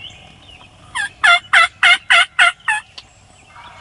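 A turkey gobbles loudly nearby.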